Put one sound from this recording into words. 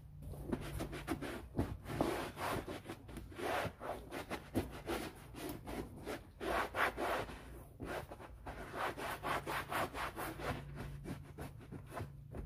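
A cloth rubs and wipes across a rubber mat.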